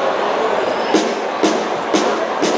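A bass drum booms in strong beats.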